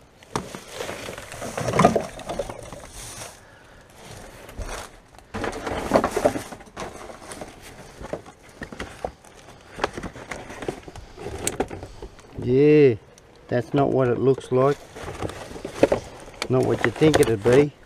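Plastic wrappers and packets rustle and crinkle as gloved hands rummage through rubbish in a bin.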